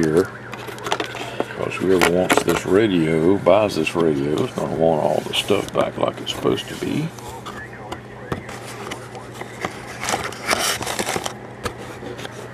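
Cardboard and paper rustle as a box is handled.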